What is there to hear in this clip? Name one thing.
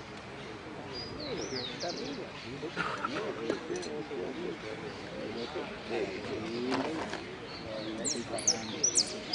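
A small songbird sings in short bright whistles and trills.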